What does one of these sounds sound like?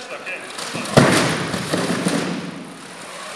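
A robot's wheels clatter and bump over wooden ramps.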